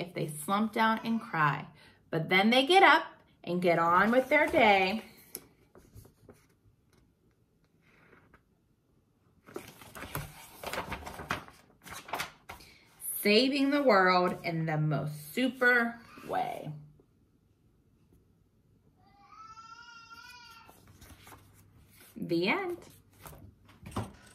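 A young woman reads aloud with expression, close by.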